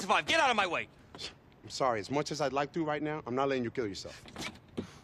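A man speaks urgently and pleads.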